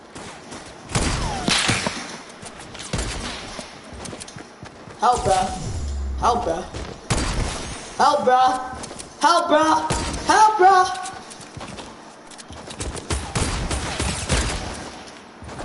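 Gunshots crack out one after another, each followed by a short echo.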